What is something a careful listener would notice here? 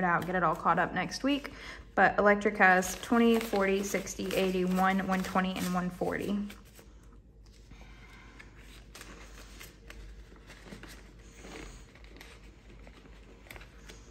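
Paper bills rustle and crinkle as they are handled.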